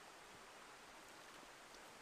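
Water splashes softly as a hand dips into a shallow stream.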